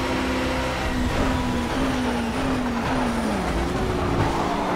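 A racing car engine's pitch drops as the car slows for a corner.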